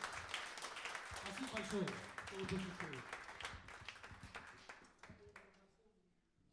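A live band plays a lively tune through loudspeakers and then stops.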